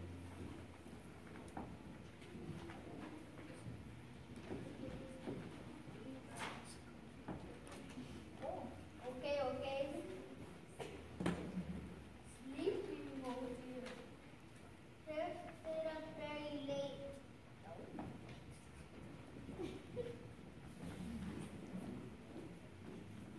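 A young child reads lines aloud in a large echoing hall.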